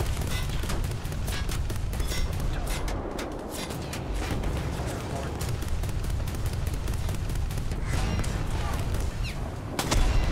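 Naval guns fire in rapid bursts.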